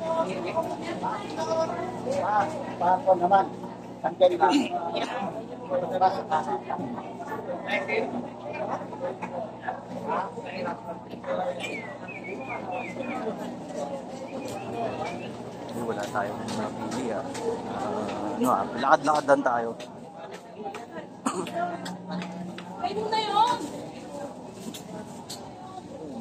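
A crowd of shoppers and vendors chatters all around.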